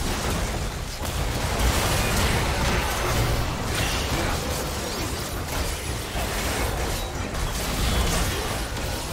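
Spell effects and magic blasts crackle and boom in a video game battle.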